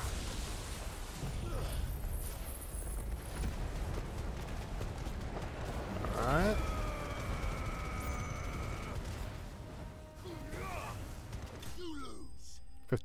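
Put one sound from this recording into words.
Loud crackling blasts and rumbling effects from a game roar.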